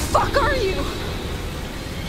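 A young woman shouts angrily nearby.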